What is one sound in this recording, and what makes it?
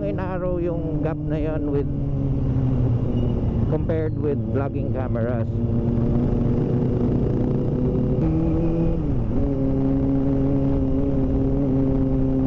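A motorcycle engine drones steadily up close, its pitch shifting as it changes gear.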